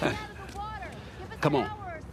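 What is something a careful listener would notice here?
A middle-aged man chuckles.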